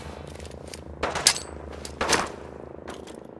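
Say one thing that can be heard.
A laser pistol fires with sharp zapping blasts.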